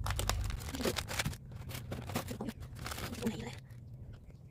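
A plastic wrapper crinkles as hands handle it.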